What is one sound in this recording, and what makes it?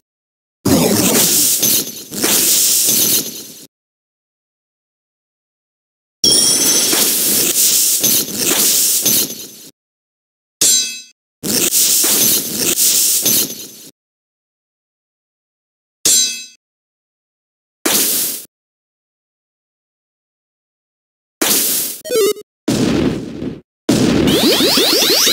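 Short bursts of video game battle sound effects play, with pauses between them.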